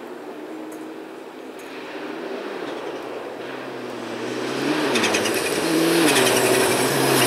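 A rally car engine roars, growing louder as it approaches at speed.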